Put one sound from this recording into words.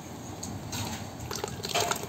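Shredded vegetables patter into a metal pot.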